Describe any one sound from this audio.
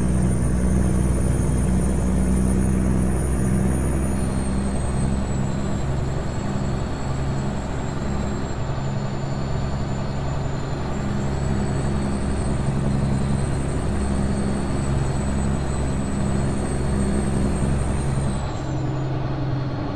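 A truck engine rumbles steadily as it drives along a highway.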